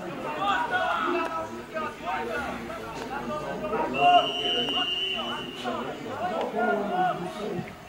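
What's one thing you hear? Young men shout and call out to each other outdoors.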